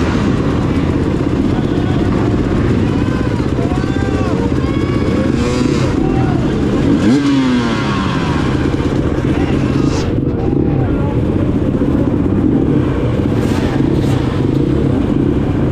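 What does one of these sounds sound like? A crowd cheers and whistles nearby.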